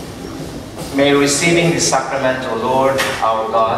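A man chants in a slow, steady voice, echoing in a large hall.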